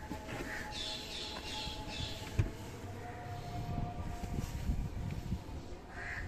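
A hand lifts felt trunk carpet, which rustles.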